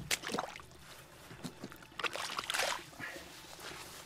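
Boots squelch in soft mud.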